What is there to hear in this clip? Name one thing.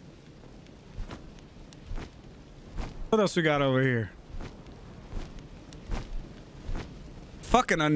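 Large wings flap with soft thuds.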